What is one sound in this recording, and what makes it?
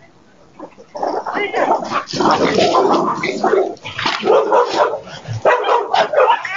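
Dogs bark loudly and frantically nearby.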